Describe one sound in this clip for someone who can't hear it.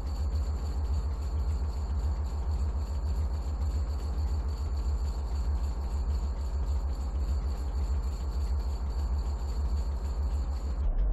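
A hovering vehicle's engine hums with a low, steady throbbing.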